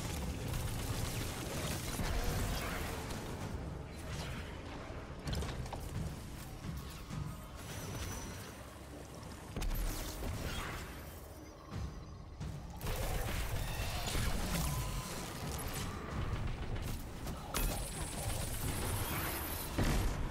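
Gunfire from a game rifle rattles in rapid bursts.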